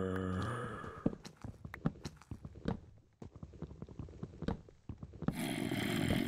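Stone blocks crunch and break under repeated pickaxe strikes.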